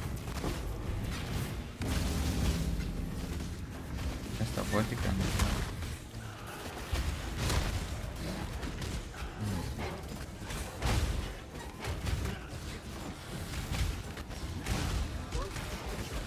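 Spells explode and crackle over and over.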